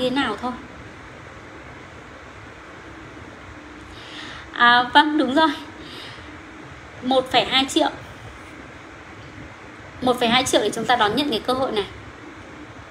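A woman speaks calmly in short phrases, close to the microphone.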